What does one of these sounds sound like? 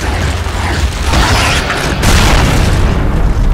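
An explosion booms and debris scatters.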